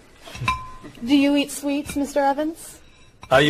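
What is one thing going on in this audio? A young woman asks a question in a friendly voice.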